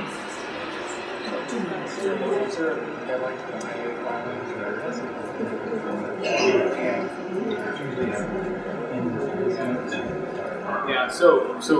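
A man speaks calmly into a microphone, heard through a loudspeaker in a room.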